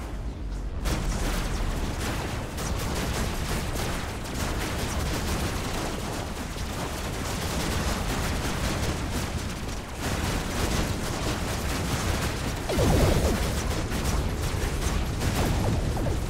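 Explosions boom as shots hit.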